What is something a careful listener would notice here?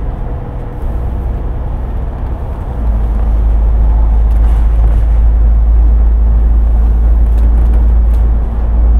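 A bus engine rumbles low and steady, growing louder as it speeds up.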